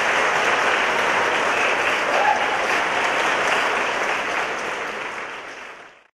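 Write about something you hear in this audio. An audience claps loudly in a large hall, and the applause fades away.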